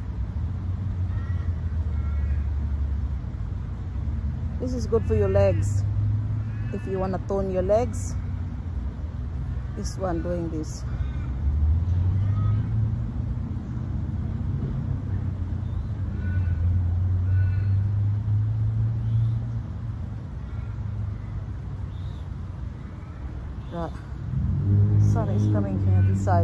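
A young woman talks close by, calmly and with animation.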